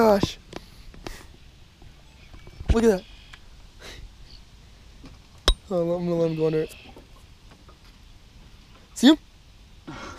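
A young man talks briefly and casually nearby.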